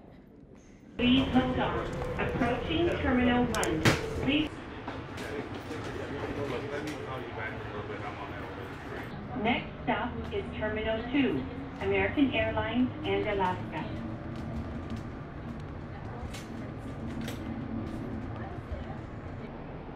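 A train rumbles and hums along its track.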